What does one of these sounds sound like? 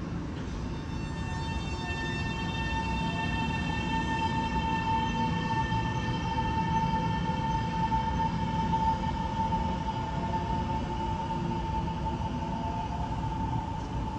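Train wheels rumble on the tracks.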